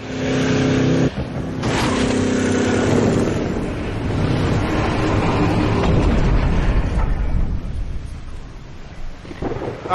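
Dark, dramatic music plays through small built-in speakers.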